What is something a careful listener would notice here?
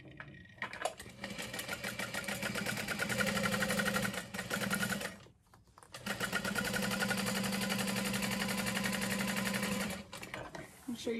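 A sewing machine whirs steadily in two long runs.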